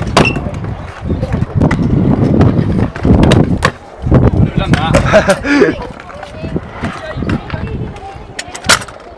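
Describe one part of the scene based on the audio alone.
A scooter deck clatters sharply against concrete.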